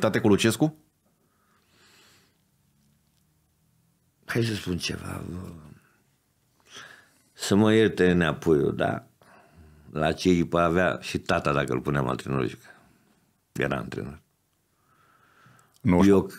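A middle-aged man speaks with animation into a close microphone, in bursts with pauses.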